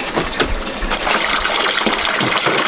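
Water pours steadily into a metal basin and splashes.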